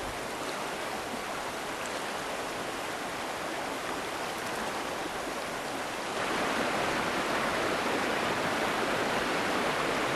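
Rapids rush and roar loudly, growing louder and closer.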